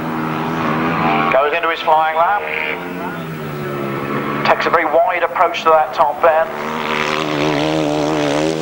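A motorcycle engine roars steadily.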